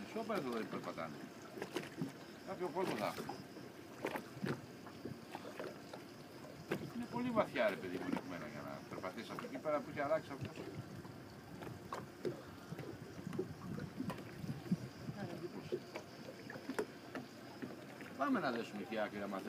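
Small waves lap gently against the water's edge.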